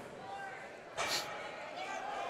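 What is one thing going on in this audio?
A loaded barbell clanks against the floor.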